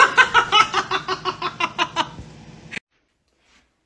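A man laughs loudly and excitedly.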